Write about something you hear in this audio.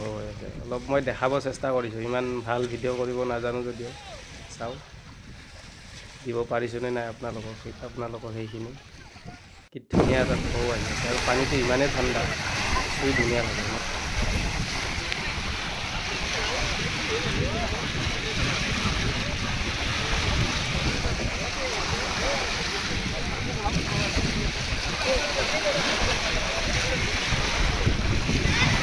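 Small waves lap and splash against a rocky shore.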